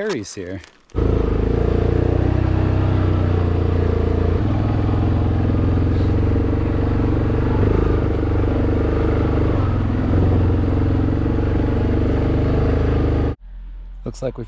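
An all-terrain vehicle engine runs loudly and steadily close by.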